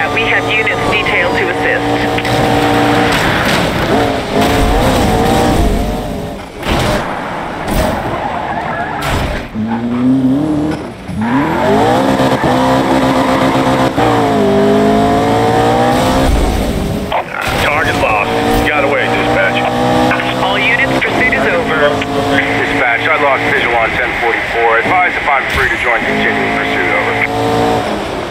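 A sports car engine roars loudly, revving up and down as gears change.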